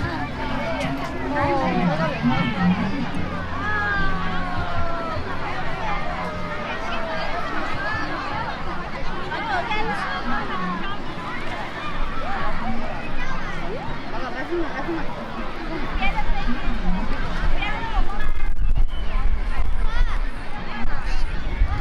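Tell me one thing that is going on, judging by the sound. A crowd of people chatters and calls out across an open outdoor space.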